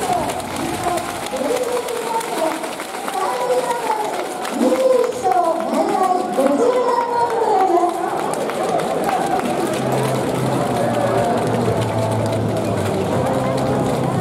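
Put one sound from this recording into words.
Players slap hands together in a row of high fives.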